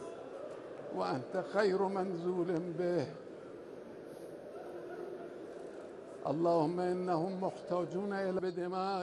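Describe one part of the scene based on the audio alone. An elderly man chants a prayer in a slow, trembling voice through a loudspeaker.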